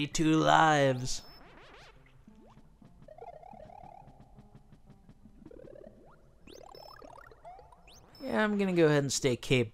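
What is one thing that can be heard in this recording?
Bouncy electronic game music plays throughout.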